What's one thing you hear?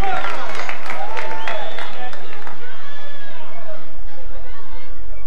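A crowd cheers and whistles in a large room.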